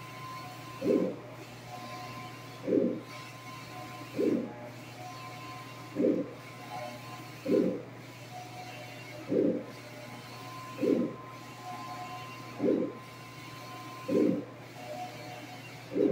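A printer's carriage thuds at each end of its pass, about every one and a half seconds.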